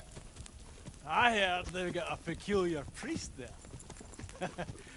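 A man speaks with animation and laughs.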